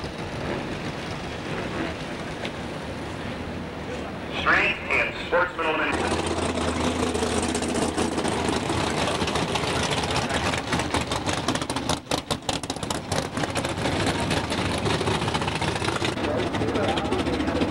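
Race car engines idle and rumble close by.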